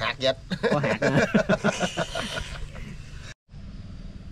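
Two men laugh heartily, close by.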